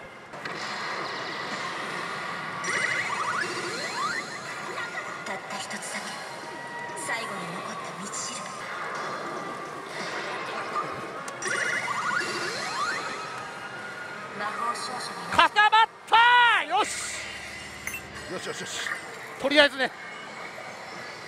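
Electronic music and sound effects play loudly from a slot machine.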